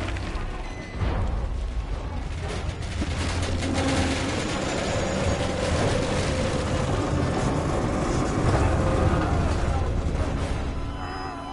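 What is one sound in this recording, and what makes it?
A loud rumble and roar fill the air.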